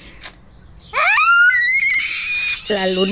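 A young girl squeals with excitement.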